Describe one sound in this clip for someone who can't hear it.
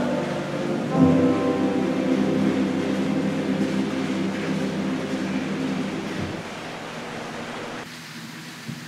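An organ plays along with the choir.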